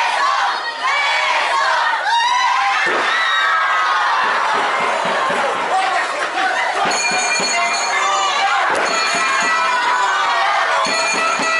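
Wrestlers' bodies slam onto a ring floor with heavy thuds.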